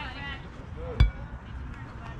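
A bat strikes a baseball with a crack.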